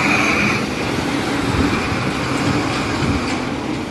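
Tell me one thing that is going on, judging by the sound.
A tanker truck rumbles past.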